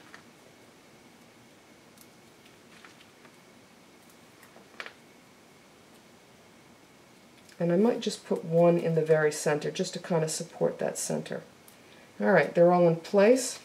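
Fingers press and tap lightly on stiff card.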